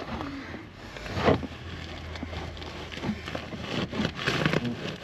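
Fibreglass insulation rustles as it is pushed aside.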